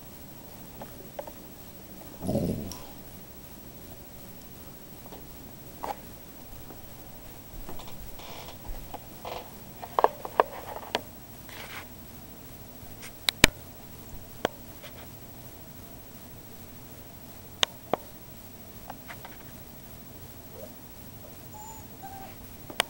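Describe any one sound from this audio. Dogs' paws shuffle and tap on a carpet.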